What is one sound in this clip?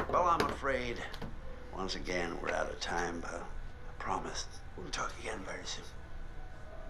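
A middle-aged man speaks in a low, grave voice, close by.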